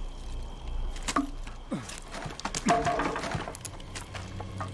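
Boards and debris creak and clatter underfoot.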